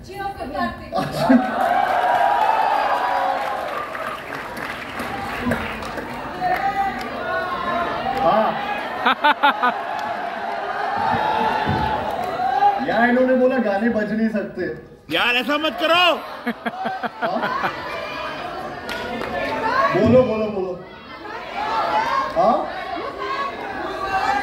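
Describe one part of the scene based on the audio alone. A man speaks animatedly through a microphone in a large hall.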